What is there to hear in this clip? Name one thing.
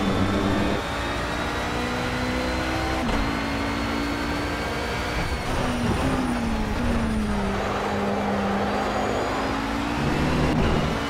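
A racing car's engine roars loudly, rising through the gears and dropping as it brakes.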